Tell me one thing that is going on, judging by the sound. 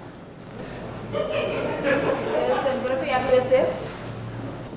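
A second woman answers in a raised voice.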